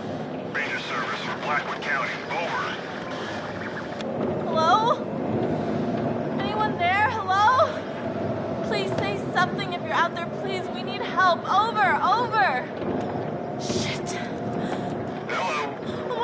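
A radio hisses and crackles with static.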